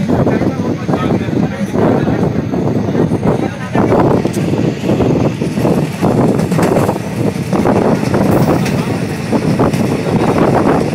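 A passenger train rattles and rumbles along the track, heard from on board.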